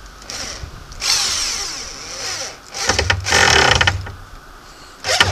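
An electric drill whirs in short bursts, driving screws into wood.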